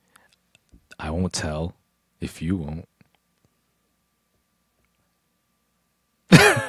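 A second young man answers and laughs into a close microphone.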